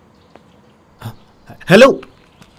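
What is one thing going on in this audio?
A young man exclaims loudly nearby.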